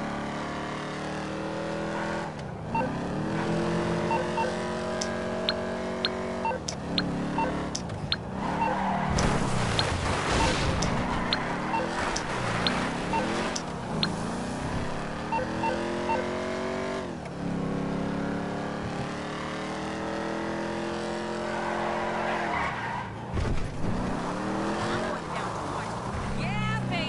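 A car engine revs up and down, rising in pitch as the car speeds up.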